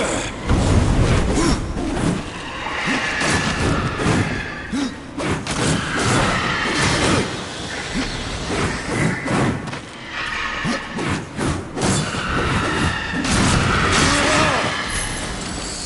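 Blades slash and clang against enemies in quick, repeated strikes.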